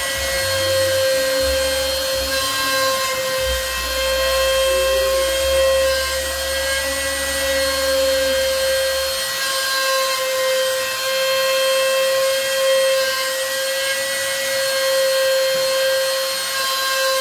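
A router motor whines steadily at high speed.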